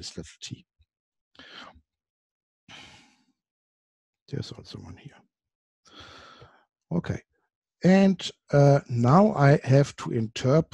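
A man lectures calmly into a close microphone.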